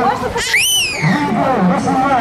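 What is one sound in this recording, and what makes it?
A child squeals briefly in a high voice.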